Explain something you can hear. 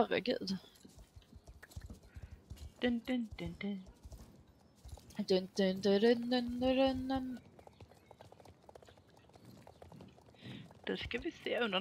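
A horse's hooves clop on stone at a steady trot.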